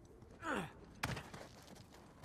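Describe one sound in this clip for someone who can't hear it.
Hands grab onto rock with a sharp thud.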